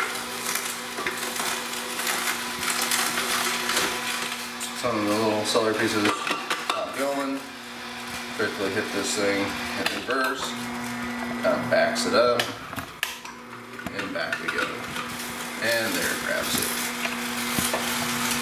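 Plastic parts click and clatter as a juicer is taken apart.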